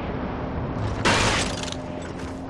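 A loud thud sounds once.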